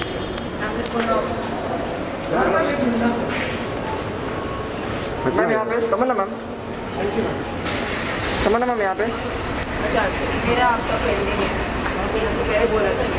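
Men call out loudly nearby.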